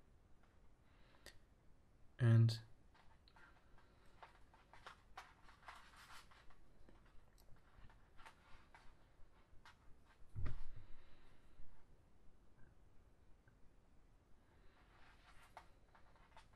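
Plastic cord strands rustle and tick as fingers pull and weave them.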